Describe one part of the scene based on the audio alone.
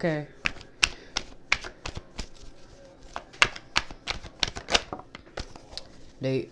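Cards are shuffled with quick, crisp snaps.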